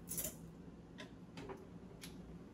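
A stove knob clicks as it turns.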